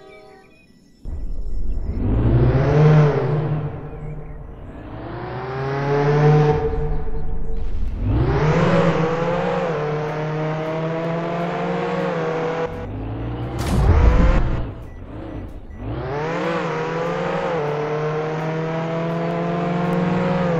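A car engine revs up repeatedly, rising in pitch and dropping as it shifts gears.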